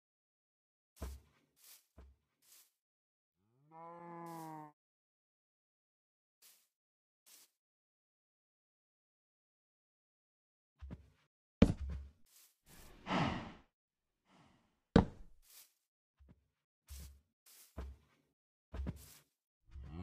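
Footsteps thud softly on grass and stone.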